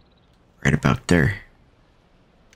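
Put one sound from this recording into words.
A man speaks briefly and animatedly into a headset microphone.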